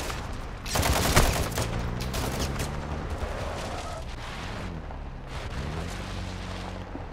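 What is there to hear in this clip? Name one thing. A vehicle engine hums steadily and revs up and down as it drives.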